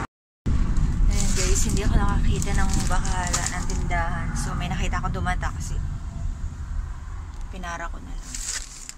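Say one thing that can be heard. A young woman speaks close to a phone microphone, muffled through a face mask.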